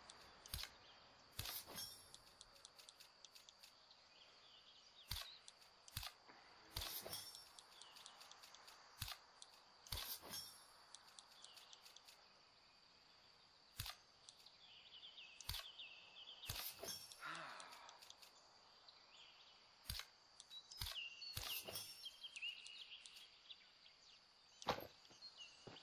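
Short interface clicks sound again and again.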